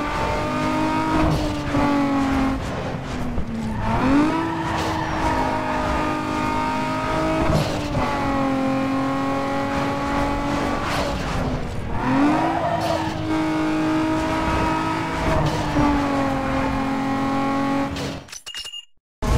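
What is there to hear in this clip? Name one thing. A racing car engine roars at high speed, its pitch dropping and climbing with each gear change.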